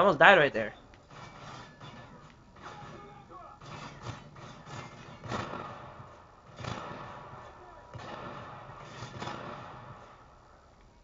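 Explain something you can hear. Video game gunfire crackles through a television speaker.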